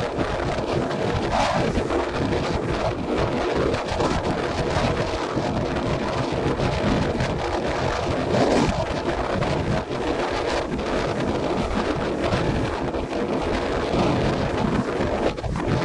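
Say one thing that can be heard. Choppy waves slosh and break on the open sea.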